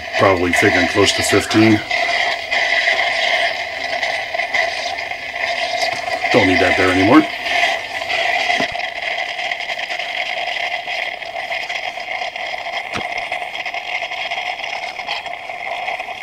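A small coffee machine hums and whirs steadily.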